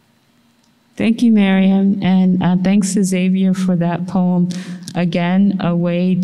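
A woman speaks into a microphone, heard over loudspeakers in a large hall.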